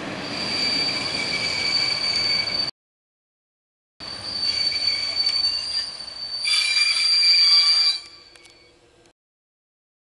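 A passenger train rolls past close by, its wheels clattering on the rails.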